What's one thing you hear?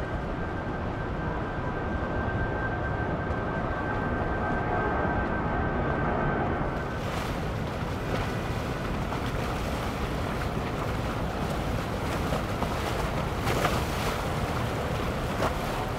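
A boat engine rumbles steadily on the water.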